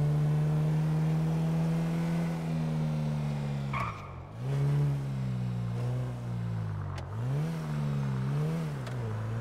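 A car engine hums steadily, its pitch dropping and rising as the car slows and speeds up.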